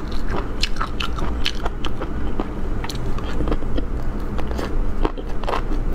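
A young woman slurps noodles close to a microphone.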